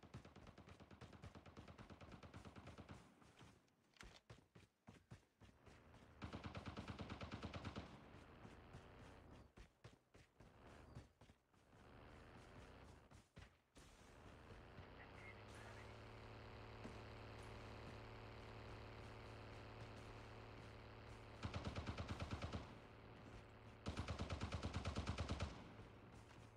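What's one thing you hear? Quick footsteps crunch over dirt and gravel.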